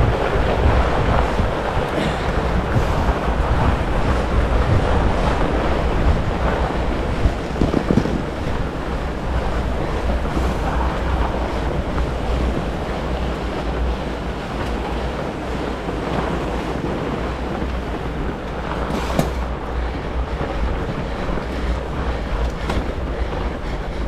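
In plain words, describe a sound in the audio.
Wind rumbles steadily across a close microphone outdoors.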